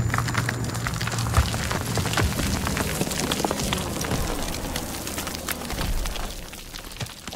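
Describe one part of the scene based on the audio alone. A deep rumble from a blast rolls and fades.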